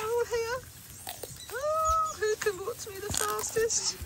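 A tortoise bites and chews a carrot with soft crunches.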